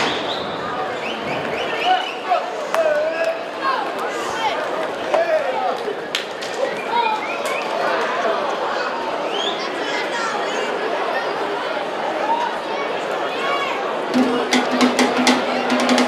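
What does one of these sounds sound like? A large outdoor crowd chatters and shouts with excitement.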